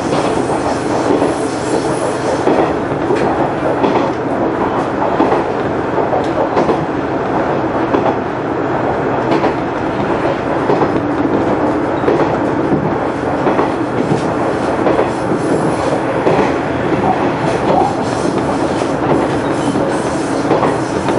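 A train engine rumbles steadily from inside the cab.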